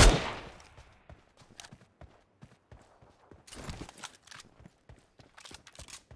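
Footsteps crunch softly on snowy ground.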